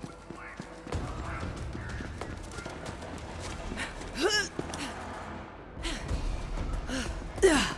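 Footsteps tread steadily across stone.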